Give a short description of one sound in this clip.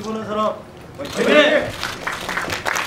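A group of men shout a cheer together.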